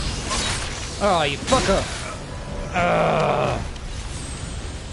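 A creature roars and shrieks as it dies.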